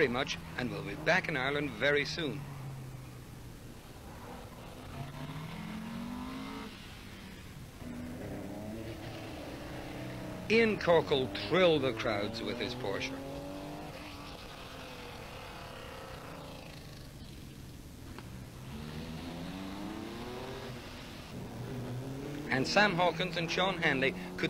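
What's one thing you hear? A rally car engine revs and drones in the distance, rising and falling through the gears.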